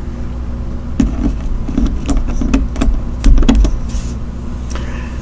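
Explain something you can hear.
Playing cards tap and slide on a wooden table.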